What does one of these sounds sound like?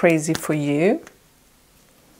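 A woman speaks brightly and close to the microphone.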